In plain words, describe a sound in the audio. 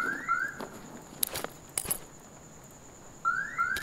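Gear rustles and thuds as items are packed into a bag.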